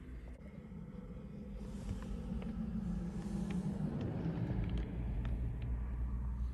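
A vehicle drives past close by.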